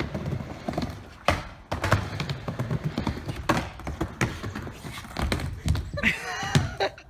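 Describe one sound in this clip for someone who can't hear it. Skateboard wheels roll and clatter on a wooden ramp.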